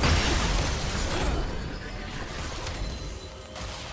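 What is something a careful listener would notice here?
Magical spell effects burst and crackle in a fight.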